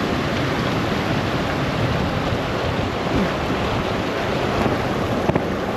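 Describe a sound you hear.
Water rushes and splashes between rocks close by.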